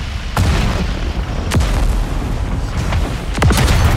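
A shell explodes with a sharp blast.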